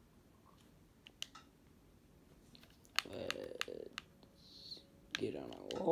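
Game menu buttons click as selections are made.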